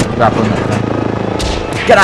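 A helicopter's rotor thumps and hums steadily.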